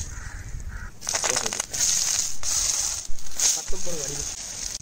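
Onions sizzle and crackle as they fry.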